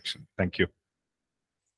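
A man speaks briefly into a microphone, heard through an online call.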